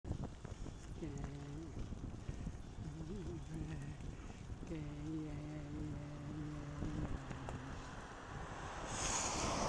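Bicycle tyres hum on a tarmac road.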